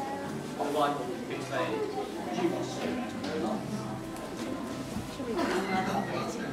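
An audience murmurs quietly in a large room.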